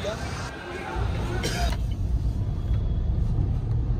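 A car engine rumbles low while driving.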